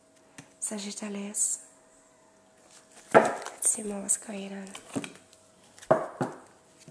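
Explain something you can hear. A woman speaks calmly and close into a microphone.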